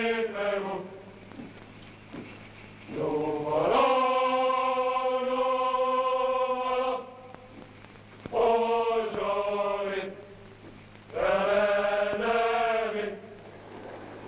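A group of men sings a marching song.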